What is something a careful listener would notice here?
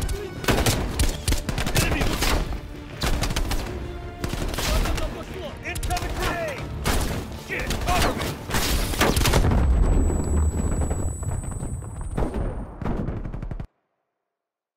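Rifle shots crack in rapid bursts.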